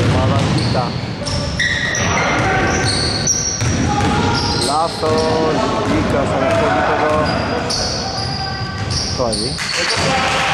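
Sneakers squeak sharply on a hardwood floor in an echoing hall.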